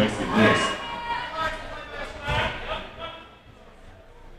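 Spectators shout and cheer in a large echoing hall.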